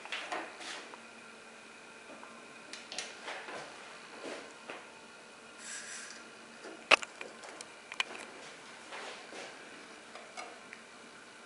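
Plastic lids and containers click and tap as they are handled close by.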